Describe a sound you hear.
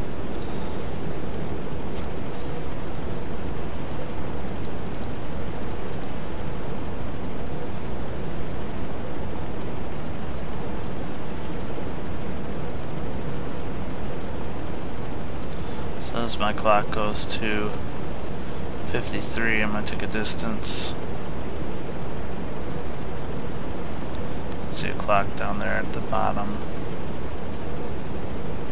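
Sea waves wash and rumble steadily.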